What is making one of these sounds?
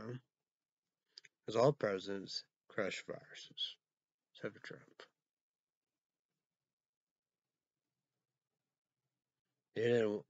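A young man speaks calmly, close to the microphone, in short bursts.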